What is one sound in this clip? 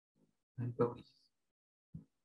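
A man speaks briefly near a microphone.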